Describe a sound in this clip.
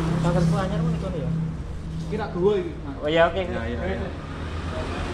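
A man talks nearby with animation.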